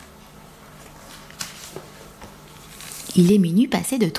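A page of a book is turned with a soft paper rustle.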